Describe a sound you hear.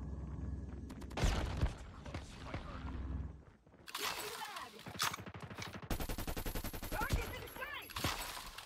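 Gunfire crackles in rapid bursts.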